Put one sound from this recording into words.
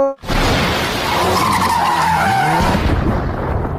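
A car engine revs loudly, rising and falling.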